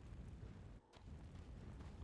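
A burst of fire whooshes and crackles.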